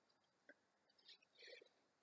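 A beaded bracelet rattles and clinks close by.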